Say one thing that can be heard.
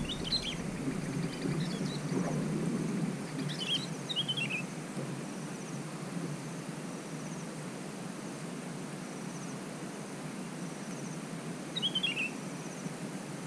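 A small bird chirps in short, quick bursts nearby.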